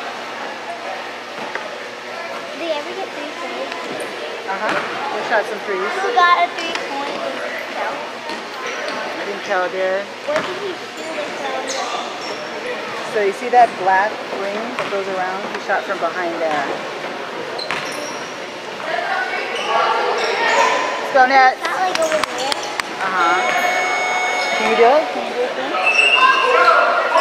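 Children and men talk and call out, echoing in a large hall.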